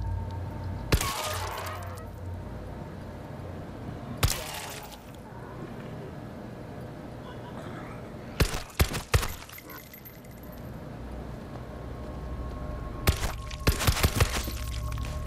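Pistol shots ring out one at a time, with some in quick bursts, echoing down a hallway.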